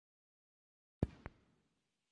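A snooker cue strikes the cue ball.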